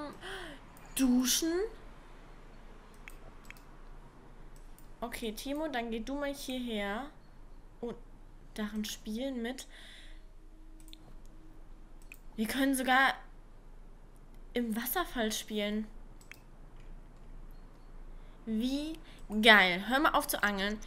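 A young woman talks casually into a close microphone, with pauses.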